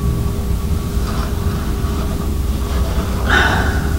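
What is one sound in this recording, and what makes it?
A planchette slides across a wooden board.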